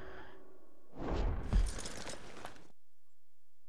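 A horse's hooves thud on grass.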